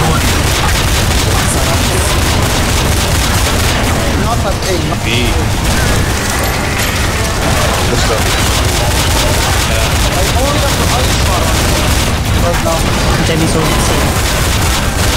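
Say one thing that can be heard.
Rapid gunfire rattles loudly and repeatedly.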